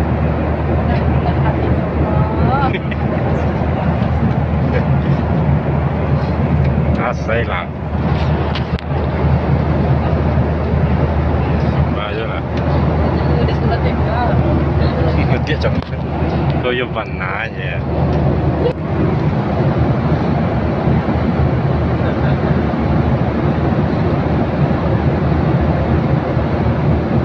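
A steady low roar of aircraft engines fills the cabin.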